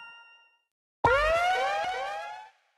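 A sparkling game jingle plays with quick rising notes, then stops.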